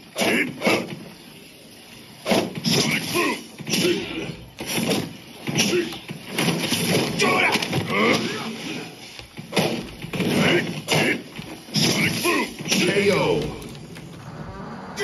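Punches and kicks land with sharp thuds and smacks from a fighting game.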